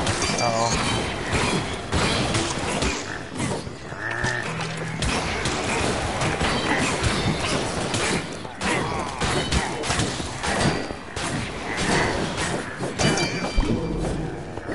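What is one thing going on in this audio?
Weapons clash rapidly in a fast fight.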